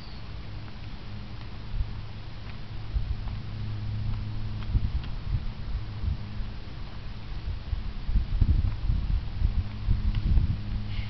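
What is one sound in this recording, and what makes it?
Wind rumbles and gusts outdoors.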